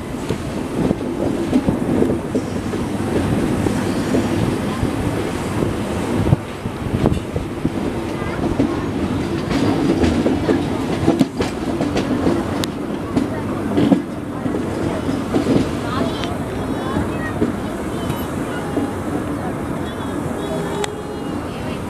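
Wind rushes past an open door of a moving train.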